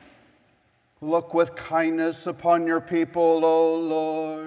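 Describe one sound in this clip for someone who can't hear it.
An elderly man chants from a book, echoing in a large hall.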